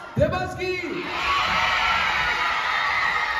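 A crowd cheers and whoops loudly.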